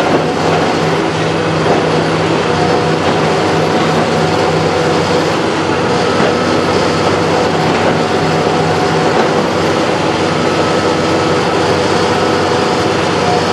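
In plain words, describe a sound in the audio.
A large diesel engine rumbles steadily close by.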